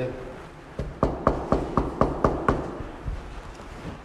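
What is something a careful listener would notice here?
A young man knocks on a door several times.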